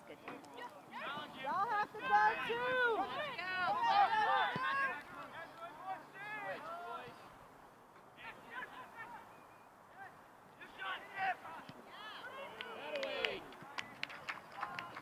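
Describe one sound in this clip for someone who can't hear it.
Young players shout outdoors.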